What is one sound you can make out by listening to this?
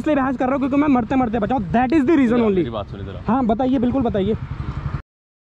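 A man talks close by, with animation.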